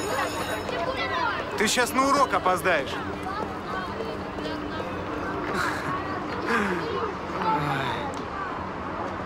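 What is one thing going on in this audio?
A man speaks cheerfully and laughs.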